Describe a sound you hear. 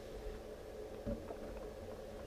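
A glass bottle is set down on a wooden table with a knock.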